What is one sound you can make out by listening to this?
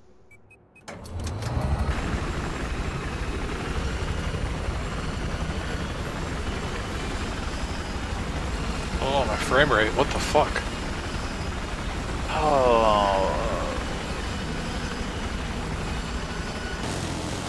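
A helicopter's rotor and engine drone steadily.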